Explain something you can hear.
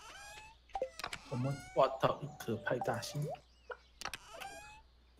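A game's menu opens and closes with short clicks.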